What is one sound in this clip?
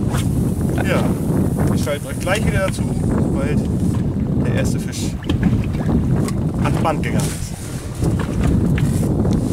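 A young man talks calmly close by, outdoors in wind.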